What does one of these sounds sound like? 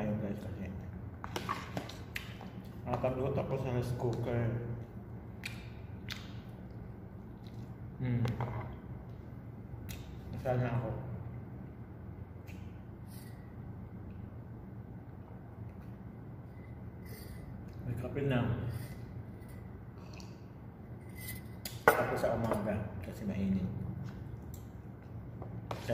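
A spoon and fork clink against a plate.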